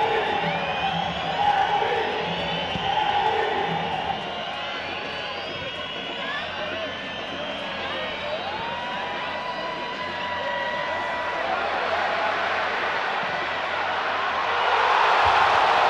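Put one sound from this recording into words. A large stadium crowd chants and sings.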